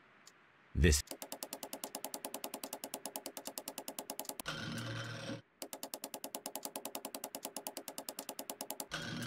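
A safe's combination dial clicks rapidly as it turns.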